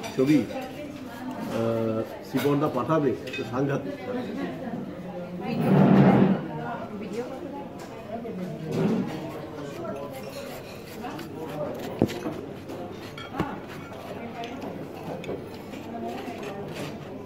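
A hum of chatter from other diners fills the room.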